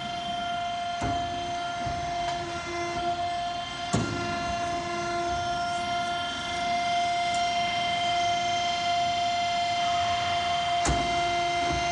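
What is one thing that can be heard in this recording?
Metal clanks sharply now and then inside a machine.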